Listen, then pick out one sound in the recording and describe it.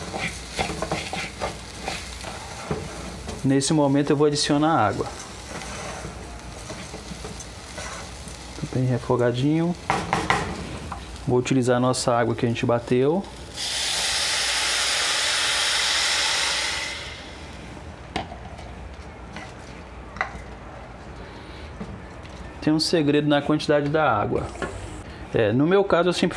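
A wooden spoon scrapes and stirs rice in a metal pot.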